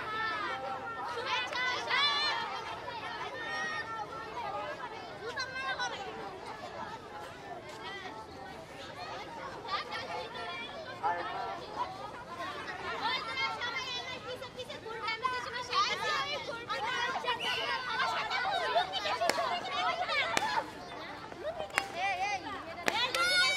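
Children chatter and shout outdoors.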